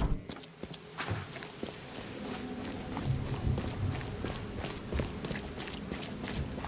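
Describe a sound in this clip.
Footsteps crunch on gravel and dirt outdoors.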